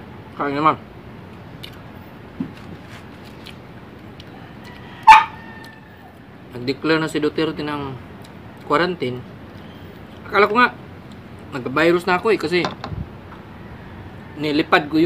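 A young man talks calmly close by, between bites.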